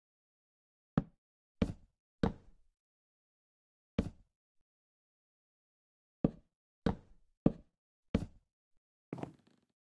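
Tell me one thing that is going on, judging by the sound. Wooden blocks are set down with short knocks.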